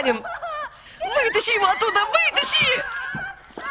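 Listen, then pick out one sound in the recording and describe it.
A young woman screams in distress.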